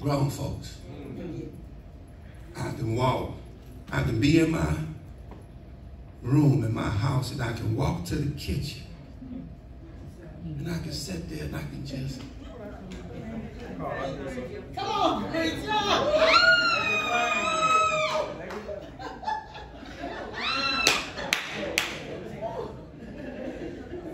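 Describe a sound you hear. A man preaches with animation into a microphone, his voice filling an echoing hall.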